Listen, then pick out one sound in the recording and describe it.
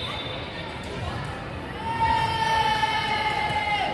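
Young women call out to each other.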